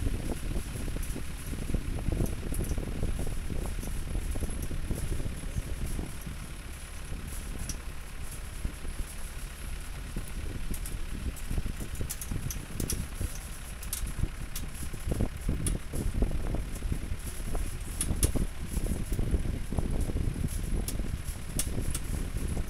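Tyres roll and bump over a dirt road.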